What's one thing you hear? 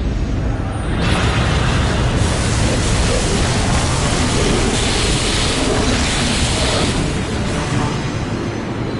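Rushing water roars loudly.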